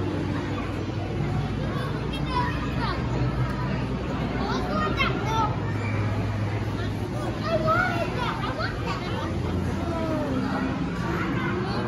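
A crowd of visitors murmurs in a large echoing hall.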